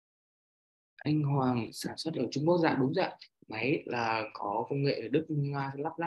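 A young man speaks with animation over an online call.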